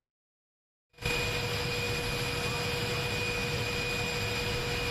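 A large jet aircraft hums steadily close by.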